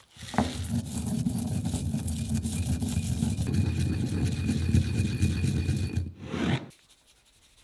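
A stone pestle grinds in a stone mortar.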